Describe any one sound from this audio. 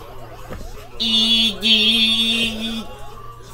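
A loud electronic jingle from a retro arcade game plays through a television speaker.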